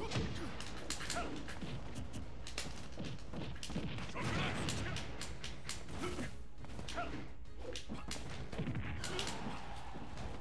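Video game punches and hits crack sharply.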